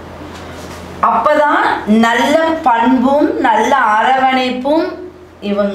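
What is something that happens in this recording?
A middle-aged woman speaks clearly and with animation, close by.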